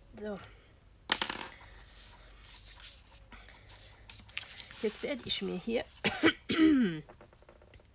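Paper and a cutting mat slide and rustle across a table.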